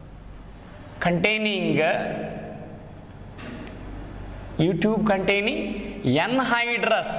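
A man speaks steadily, lecturing up close.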